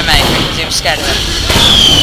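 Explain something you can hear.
A rocket explodes with a loud boom.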